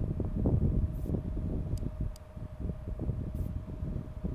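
Switches click during a game task.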